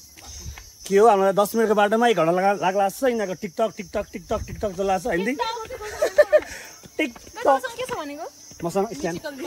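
A young woman talks and laughs close by.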